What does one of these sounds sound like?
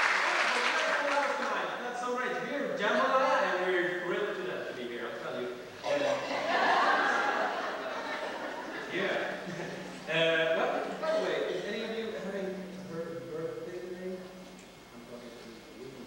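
A small group of singers sings together, heard from a distance in a large hall.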